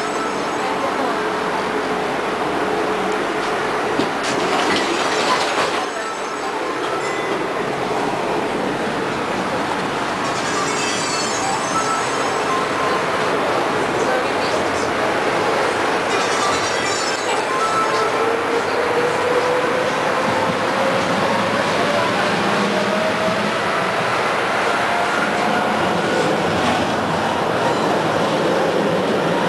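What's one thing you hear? A tram rumbles and rattles along its tracks.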